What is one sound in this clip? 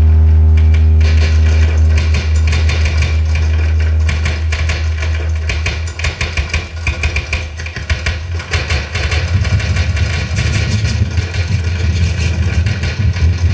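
Harsh electronic crackling and buzzing noise plays through loudspeakers.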